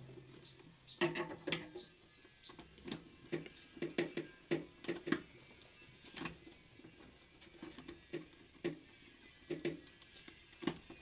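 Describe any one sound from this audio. A screwdriver clicks and taps against metal terminals.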